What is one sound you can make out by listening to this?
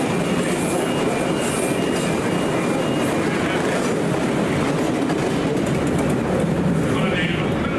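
A passenger train rushes past close by, its wheels rumbling and clattering on the rails.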